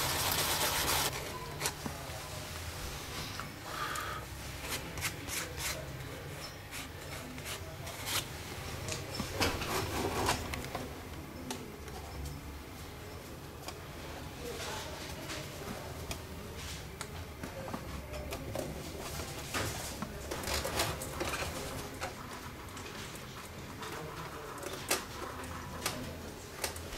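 Fingers tap and rub on a wooden instrument body.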